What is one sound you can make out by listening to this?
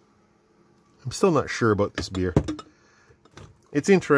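A glass is set down on a hard surface with a soft knock.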